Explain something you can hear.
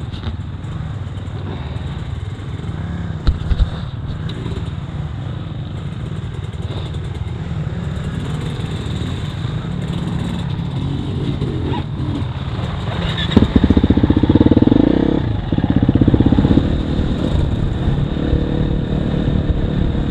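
A dirt bike engine idles and revs up close.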